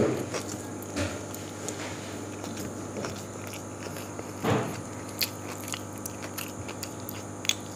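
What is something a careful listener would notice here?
A man chews food noisily up close.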